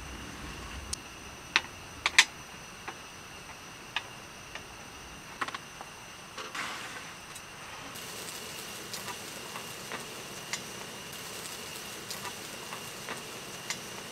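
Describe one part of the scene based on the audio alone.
Meat sizzles in a hot pan.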